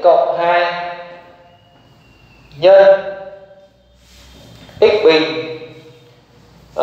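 A man speaks with emphasis, heard close through a microphone.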